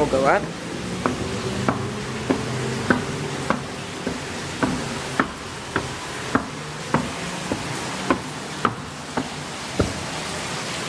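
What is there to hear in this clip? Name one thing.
Escalator steps click at a regular pace.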